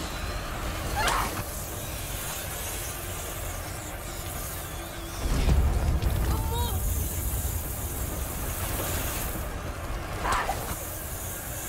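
A fiery burst whooshes and crackles.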